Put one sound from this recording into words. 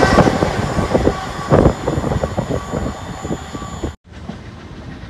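A train rolls by, its wheels clattering and squealing on the rails.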